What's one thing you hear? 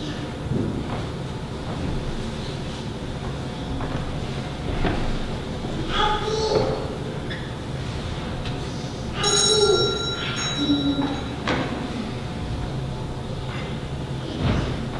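An elderly man speaks quietly in a large echoing room.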